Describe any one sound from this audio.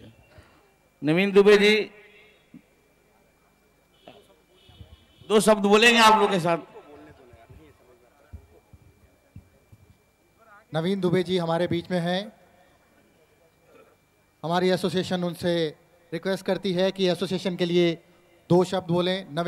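A woman speaks loudly into a microphone over a loudspeaker, in bursts with long pauses.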